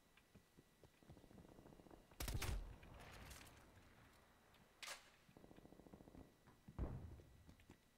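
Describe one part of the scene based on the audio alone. Gunshots bang loudly in a video game.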